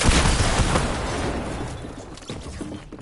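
An explosion bursts loudly and rumbles away.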